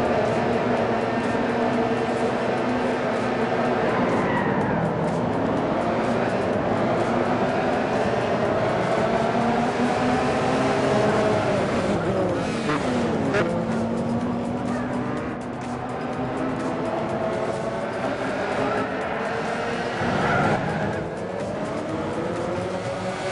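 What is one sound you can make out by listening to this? Racing car engines roar steadily, their pitch climbing and dropping with each gear change.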